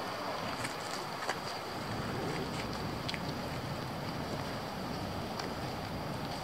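Footsteps scuff on pavement nearby.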